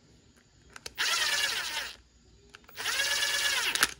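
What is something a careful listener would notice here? A cordless impact driver whirs loudly in short bursts.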